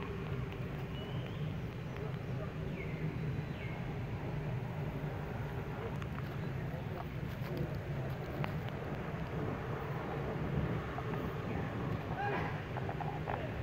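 A baby monkey gives short, high squeaks.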